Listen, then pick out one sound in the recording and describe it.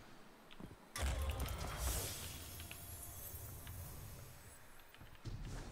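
A loud magical whoosh bursts out as a chest opens, then rumbles and fades.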